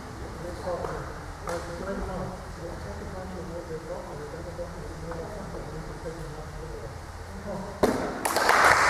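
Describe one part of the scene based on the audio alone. Young women talk quietly in a large echoing hall.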